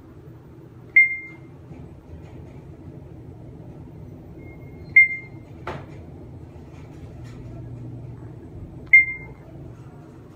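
An elevator chime dings briefly as each floor passes.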